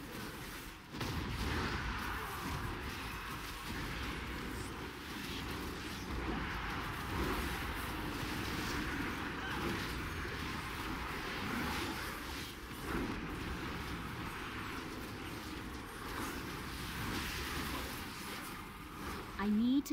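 Magic spells crackle and whoosh in a fast battle.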